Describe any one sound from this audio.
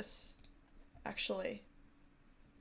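A woman speaks briefly and calmly into a microphone, close by.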